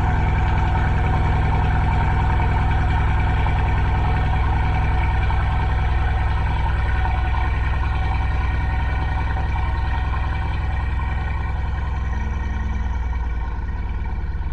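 A large car engine idles with a deep, steady rumble close by.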